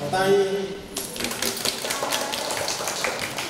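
People clap their hands in rhythm.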